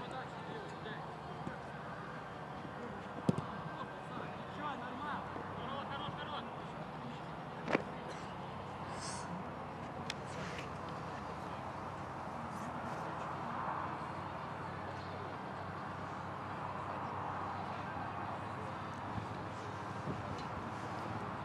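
Young men shout to each other far off on an open field.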